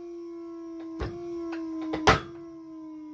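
A rope knocks against a metal edge.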